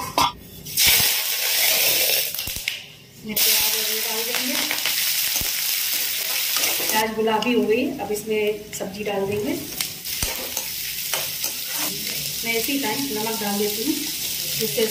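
Hot oil sizzles steadily in a pan.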